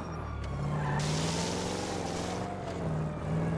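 Car tyres screech on pavement.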